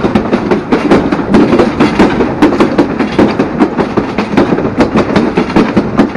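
Wind rushes past the moving train.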